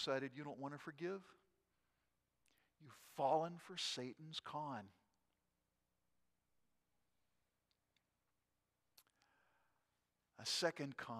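An older man speaks calmly through a microphone, with pauses between phrases.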